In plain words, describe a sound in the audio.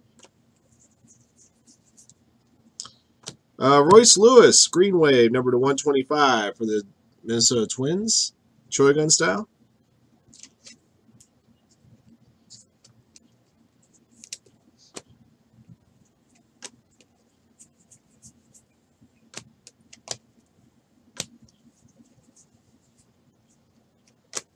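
Trading cards flick and rustle as they are shuffled by hand.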